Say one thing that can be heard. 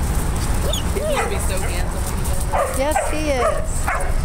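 Dogs whine and yelp nearby.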